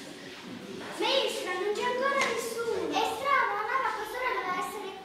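Young girls sing together in unison.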